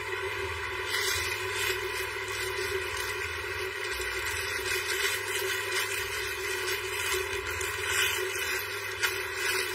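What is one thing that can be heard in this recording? A plastic bag rustles and crinkles as it is handled.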